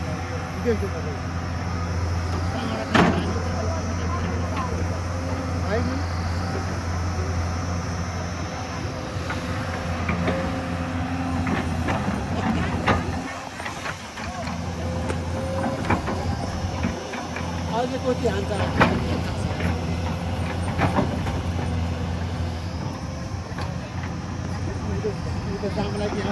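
An excavator's hydraulics whine as the arm moves.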